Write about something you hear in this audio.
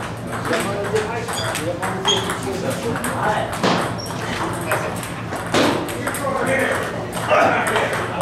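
Ping-pong balls click sharply off paddles and tables in quick rallies.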